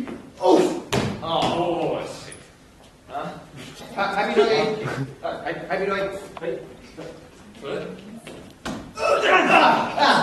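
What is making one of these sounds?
Shoes thump on a wooden floor.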